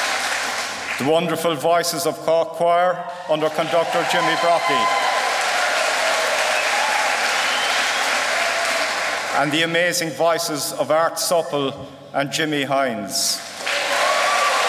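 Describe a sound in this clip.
A middle-aged man speaks into a microphone over loudspeakers.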